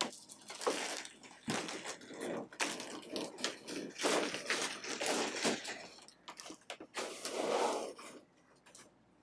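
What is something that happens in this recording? A fabric cover rustles and scrapes as it is handled.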